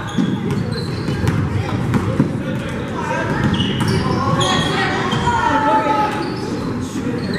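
Spectators chatter in a large echoing gym.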